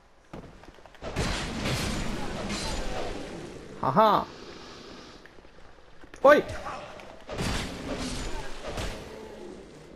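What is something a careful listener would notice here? Swords slash and clang in a fight.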